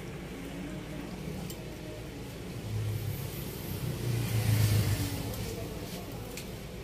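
A pot of stew simmers and bubbles softly.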